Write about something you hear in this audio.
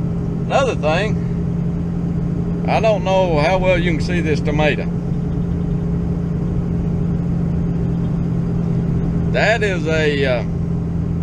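A man talks close by, calmly.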